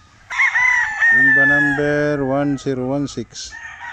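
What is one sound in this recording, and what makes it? A rooster crows loudly nearby.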